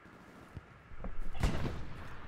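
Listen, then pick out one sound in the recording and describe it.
A heavy machine gun fires in bursts.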